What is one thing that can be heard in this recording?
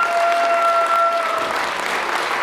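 A mixed choir holds a final sung note that breaks off.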